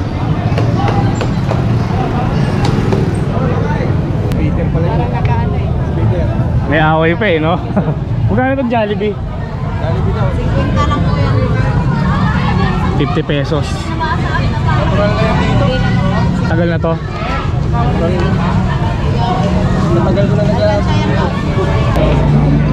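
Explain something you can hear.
A crowd of people chatters all around outdoors.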